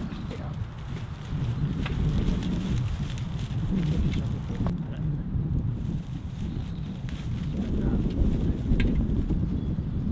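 Dry straw rustles and crackles under hands.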